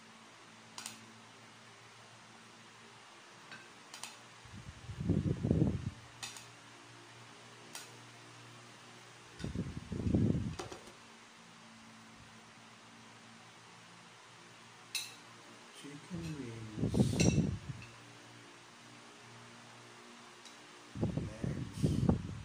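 A spoon and fork clink against a plate.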